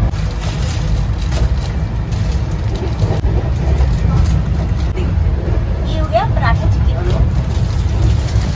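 A train rumbles steadily on its tracks.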